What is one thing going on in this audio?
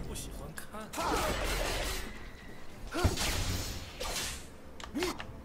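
Game spell effects whoosh and clash during a fight.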